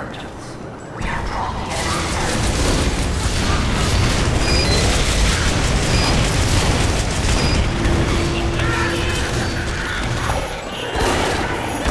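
A flamethrower roars with a loud rushing hiss.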